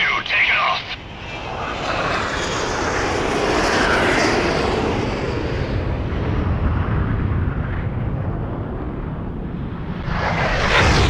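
A jet engine roars loudly as a plane speeds down a runway and takes off.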